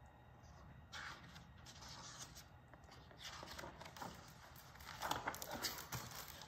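Paper pages of a book rustle as they are turned.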